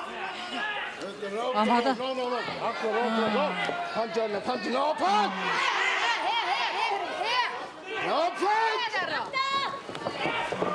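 Young women shout and scream loudly nearby.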